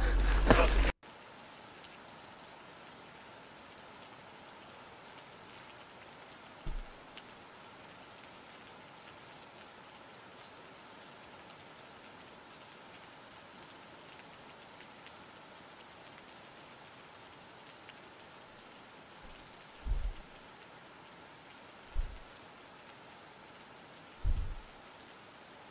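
Rain patters steadily and softly.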